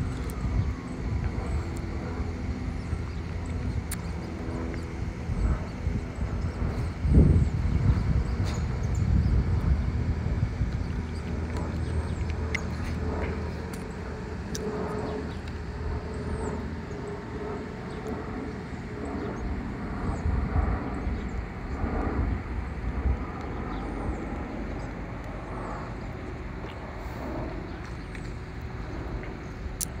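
A jet airplane rumbles steadily overhead.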